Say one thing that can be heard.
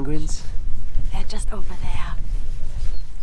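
A young man speaks and laughs close by.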